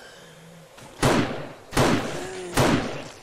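A rifle fires loudly several times.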